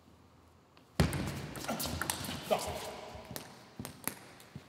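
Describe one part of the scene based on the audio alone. A table tennis ball clicks against paddles and the table in a quick rally.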